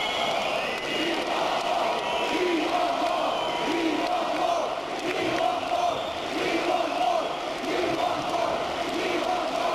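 Live music plays loudly through large loudspeakers in a big echoing hall.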